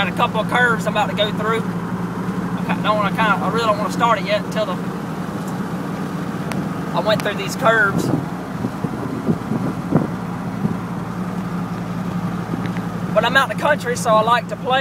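A young man talks casually, close up.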